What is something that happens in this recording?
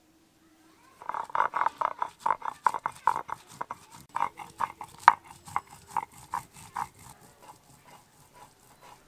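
A stone roller grinds and crushes spices on a grinding stone in quick rhythmic scrapes.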